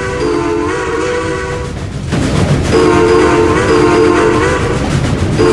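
A steam locomotive chugs along a track.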